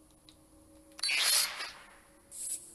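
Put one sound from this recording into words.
A game interface makes a short whooshing sound as a menu opens.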